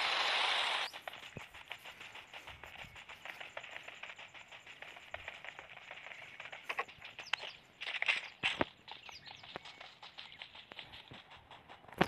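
Footsteps patter quickly on grass and dirt.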